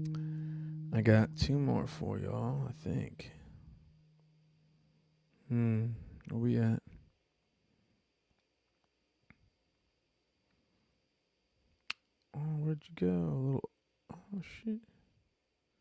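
A man sings into a microphone in short phrases.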